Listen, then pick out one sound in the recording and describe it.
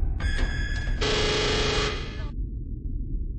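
A game alarm blares loudly for a moment.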